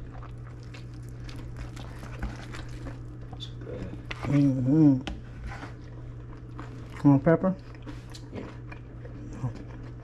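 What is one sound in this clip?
Toasted bread scrapes and rustles against a plate.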